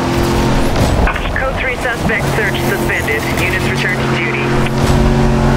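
A car smashes through obstacles with a clatter of flying debris.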